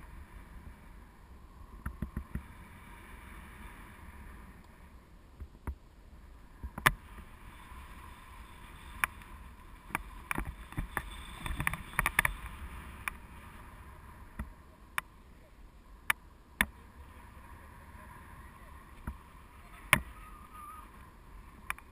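Wind rushes steadily past a microphone outdoors.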